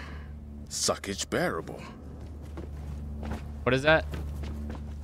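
A young man talks with animation into a close microphone.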